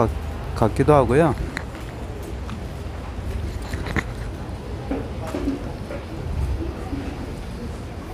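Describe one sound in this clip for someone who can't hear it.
A busy crowd murmurs outdoors in a street.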